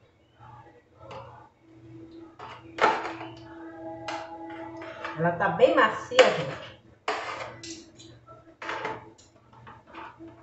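A metal pan clatters as food is handled in it.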